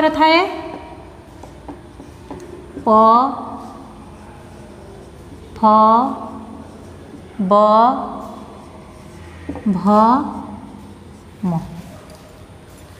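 A woman speaks single syllables slowly and clearly in an echoing room.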